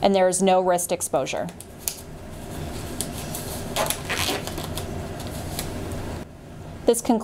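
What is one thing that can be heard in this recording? Plastic gloves rustle and snap as they are pulled on.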